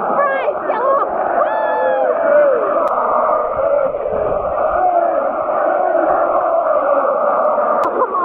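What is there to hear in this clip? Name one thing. A large stadium crowd sings and chants loudly together.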